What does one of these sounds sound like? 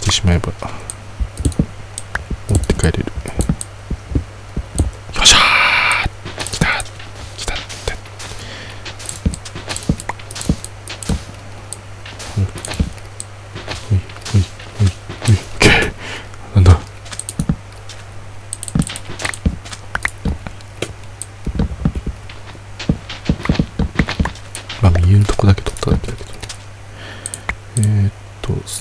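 Blocks crumble and break with short gritty crunches, again and again.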